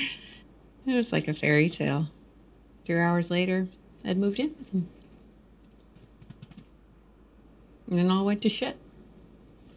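A middle-aged woman speaks calmly and softly, close by, in short phrases with pauses.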